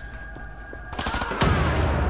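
A rifle fires a rapid burst, ringing out in an echoing stone hall.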